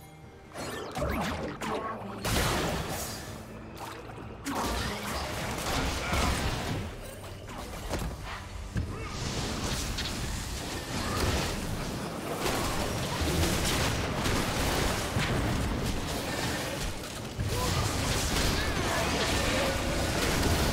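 Magic blasts whoosh and crackle in a fast fantasy battle.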